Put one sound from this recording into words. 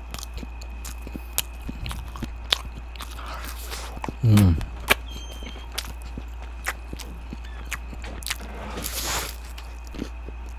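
Paper wrappers crinkle close to a microphone.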